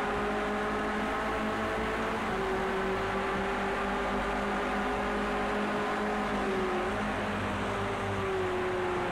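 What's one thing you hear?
A race car engine drones steadily, shifting pitch as gears change.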